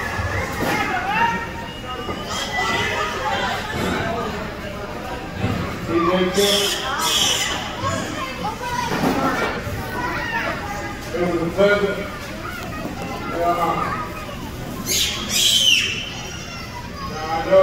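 A man shouts into a microphone over loudspeakers in a large echoing hall.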